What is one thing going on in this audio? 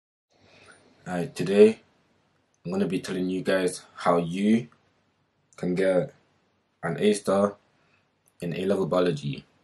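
A young man speaks earnestly and close to a microphone, in short phrases with pauses.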